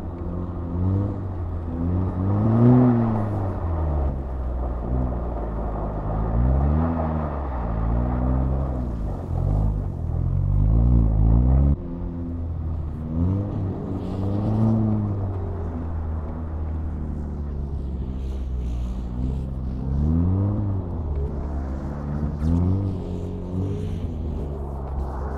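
A car engine revs up and down repeatedly, heard from inside the car.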